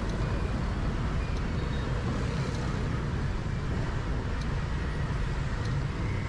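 Motorbike engines hum nearby.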